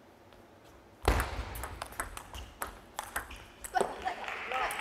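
A table tennis ball clicks back and forth between paddles and table.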